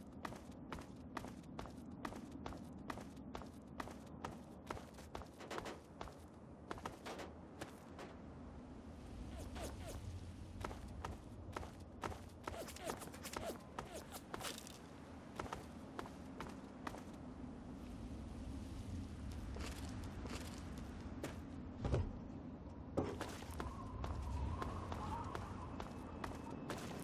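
Footsteps crunch steadily on a hard, gravelly road.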